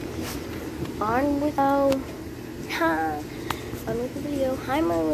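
A young girl speaks close by in a high, animated voice.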